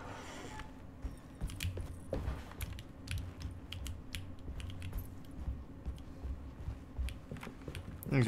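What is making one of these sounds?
Footsteps tap on a wooden floor and stairs.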